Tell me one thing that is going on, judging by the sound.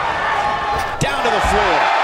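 A wrestler's body slams hard onto the floor.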